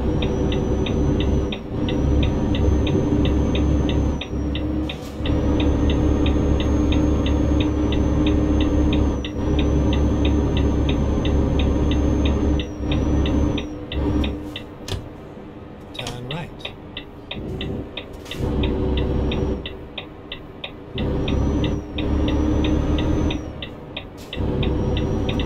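A diesel truck engine drones while cruising on a road.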